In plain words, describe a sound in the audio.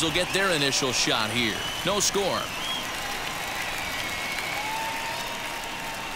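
A large crowd cheers and claps in a stadium.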